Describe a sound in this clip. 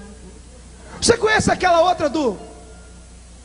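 A man sings loudly and passionately through a microphone.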